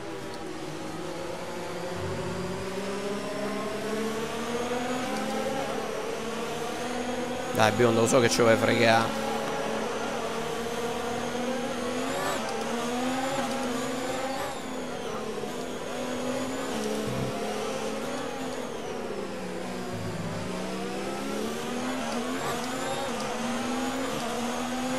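A racing car engine whines loudly, rising and falling in pitch as it shifts gears.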